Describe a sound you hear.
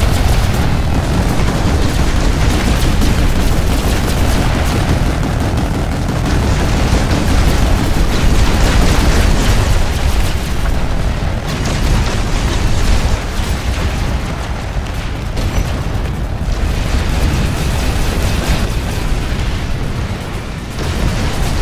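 Many vehicle engines roar and rumble as they race downhill.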